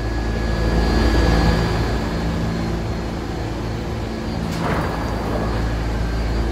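A subway train rumbles and hums steadily.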